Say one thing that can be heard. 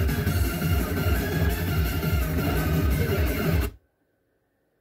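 Upbeat video game music plays loudly, then cuts off abruptly.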